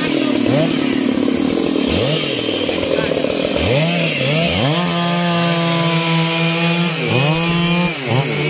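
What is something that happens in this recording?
A chainsaw engine revs up and down loudly, close by.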